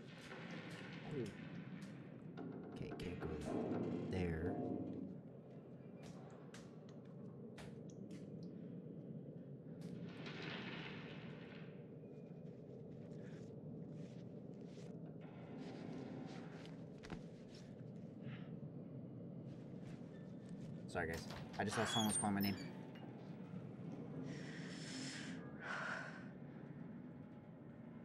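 Bare feet patter softly on a hard floor.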